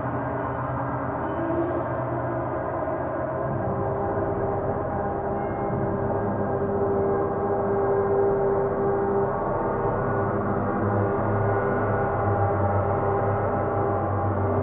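Mallets rub and strike gongs softly.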